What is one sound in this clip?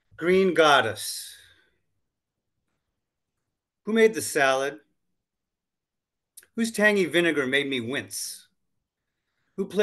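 An older man talks calmly in short phrases, heard closely through an online call microphone.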